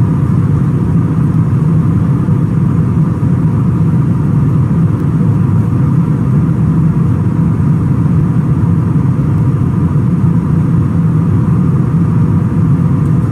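A jet airliner's engines drone steadily.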